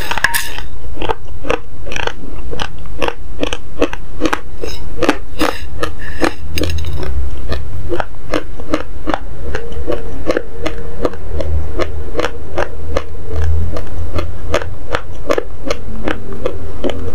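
A young woman crunches dry grains loudly and closely.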